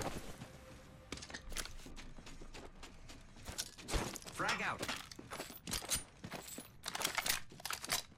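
Footsteps patter quickly on a metal floor.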